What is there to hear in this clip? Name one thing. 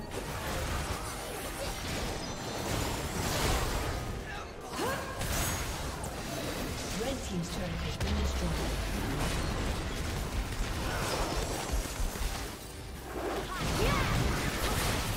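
Magic spells burst and whoosh during a fantasy battle.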